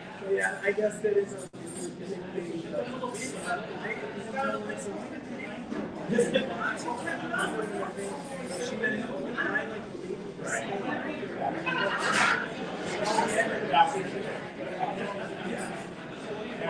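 Adult men and women talk and chatter in a room.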